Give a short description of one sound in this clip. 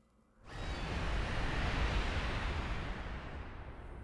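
Large wings whoosh as a creature flies past.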